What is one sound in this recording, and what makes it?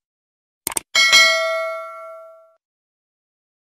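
A bell chimes and rings out.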